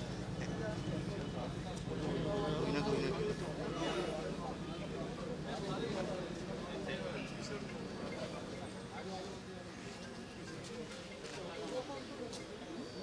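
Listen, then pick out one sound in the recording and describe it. A crowd of men chatter nearby.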